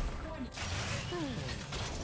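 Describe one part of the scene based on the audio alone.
Fire bursts with a roaring whoosh.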